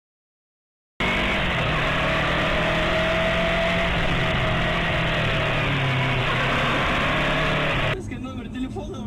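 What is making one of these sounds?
Motor scooter engines drone and rev close by in city traffic.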